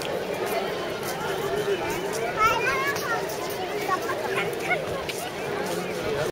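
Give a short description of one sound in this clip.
A crowd of people chatter in the distance outdoors.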